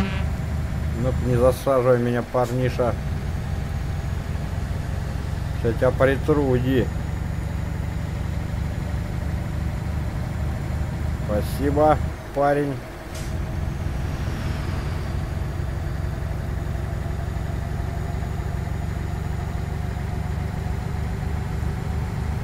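A heavy truck engine drones steadily.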